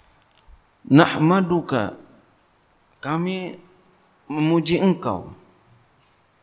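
A man speaks slowly into a microphone in short phrases, with long pauses.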